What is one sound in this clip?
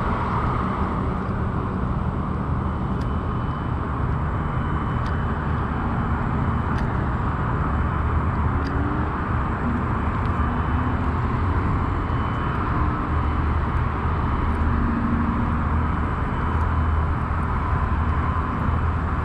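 Wind blows hard outdoors, rumbling across the microphone.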